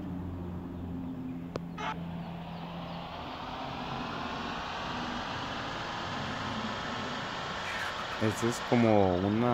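A truck engine hums and rises in pitch as the truck speeds up.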